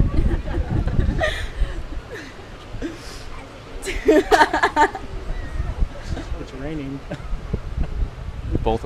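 An elderly man speaks calmly outdoors.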